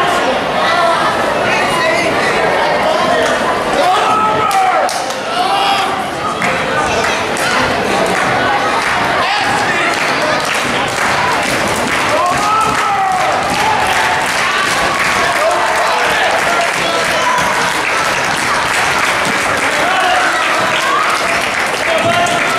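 A crowd of children and adults chatters and shouts in a large echoing hall.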